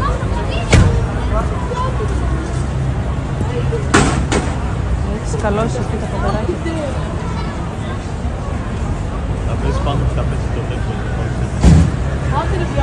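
A long pole knocks sharply against something overhead.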